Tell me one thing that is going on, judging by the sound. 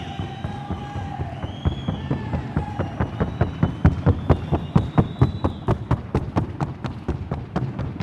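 A horse's hooves beat a fast, even rhythm on a hollow wooden boardwalk.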